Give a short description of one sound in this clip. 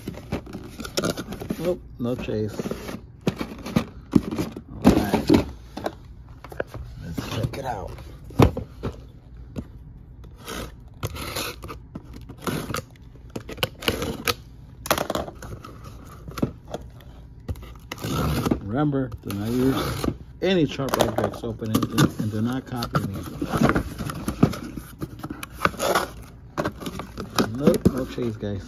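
Plastic packages clatter inside a cardboard box.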